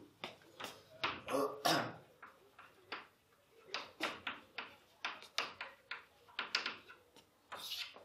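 Chalk taps and scratches on a blackboard in short strokes.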